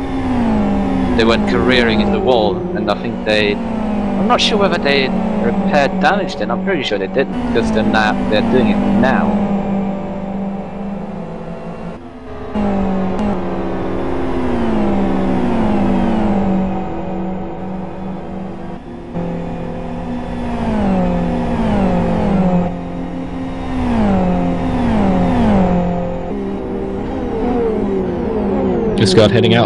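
Racing car engines roar loudly, rising in pitch and dropping as they shift gears.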